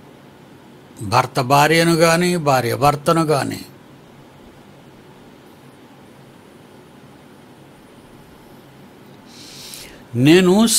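An elderly man speaks calmly and slowly into a microphone close by.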